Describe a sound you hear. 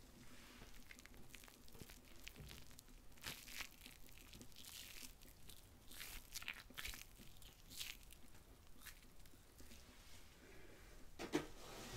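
A hand splashes and swishes in shallow water.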